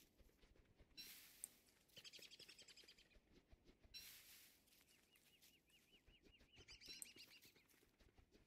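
Plants are plucked with short rustles.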